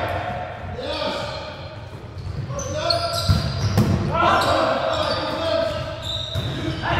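Sneakers squeak on a hard court floor.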